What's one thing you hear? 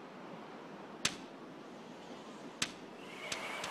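A golf ball thuds and bounces on grass.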